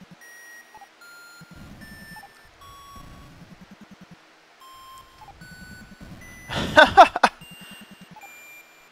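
Chiptune video game music plays in short beeping tones.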